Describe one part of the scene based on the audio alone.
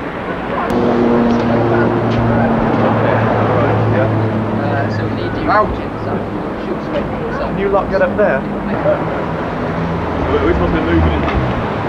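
Several young men chatter loudly close by, outdoors.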